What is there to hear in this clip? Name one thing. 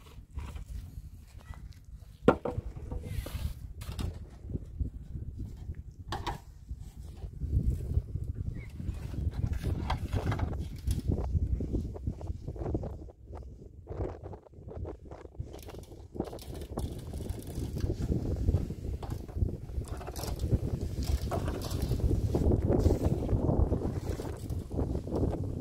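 A trowel scrapes mortar onto concrete blocks.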